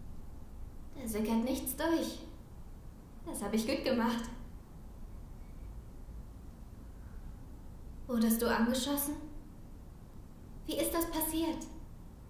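A young woman speaks softly, close by, in short phrases.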